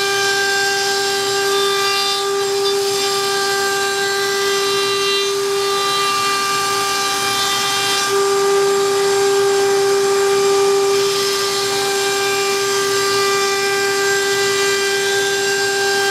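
A router whines loudly and steadily.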